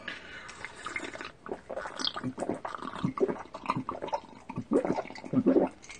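A man slurps a drink from a mug.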